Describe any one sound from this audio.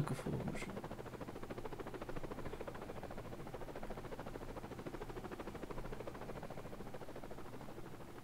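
Helicopter rotor blades thump rapidly and steadily overhead.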